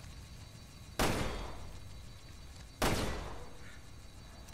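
A pistol fires two loud shots that ring out in an echoing corridor.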